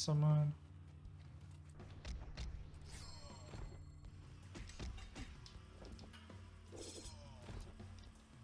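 Swords clash and slash in quick hits.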